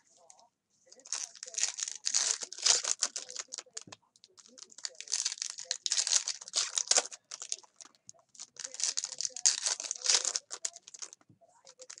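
Foil card wrappers crinkle as hands tear them open.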